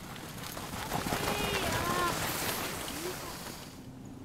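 Sled dogs yelp and whine as they run past.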